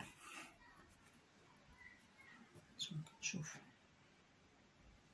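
Thread rustles as it is pulled through paper.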